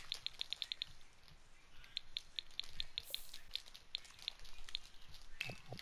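Soft interface clicks tick quickly, one after another, as a menu list scrolls.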